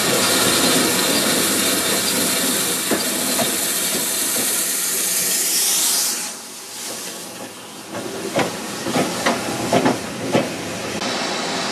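A steam locomotive chuffs as a train rolls slowly past.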